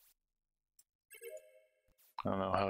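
A short bright chime plays.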